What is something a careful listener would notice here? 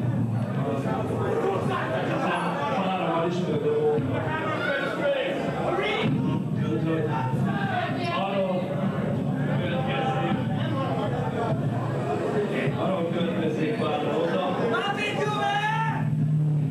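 A bass guitar thumps along.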